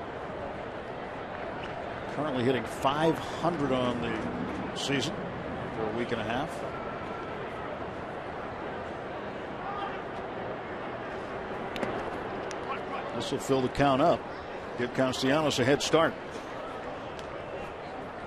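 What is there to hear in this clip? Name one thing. A stadium crowd murmurs in the background.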